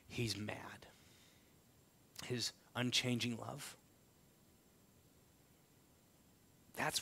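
A man speaks calmly through a microphone, pausing between phrases.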